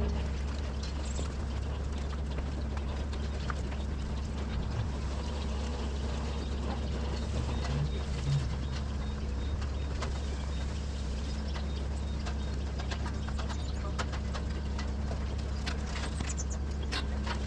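Cow hooves clatter on a slatted floor.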